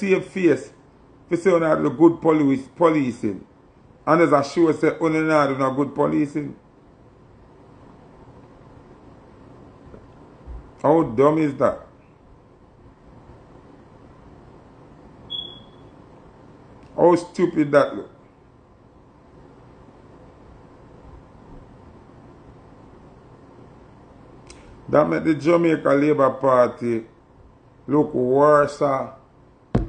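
A man speaks casually and close to a microphone, in bursts with pauses.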